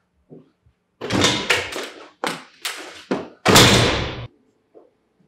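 A woman shouts angrily from close by.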